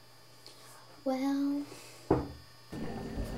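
A young girl speaks softly.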